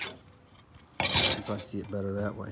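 A small metal plate clatters as it is flipped over on a hard surface.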